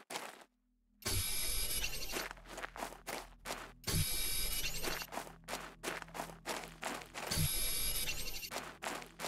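A tool hums and whirs as it draws in a rock.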